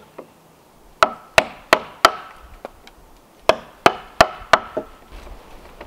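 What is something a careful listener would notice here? Boots knock sharply on wooden logs as a man climbs.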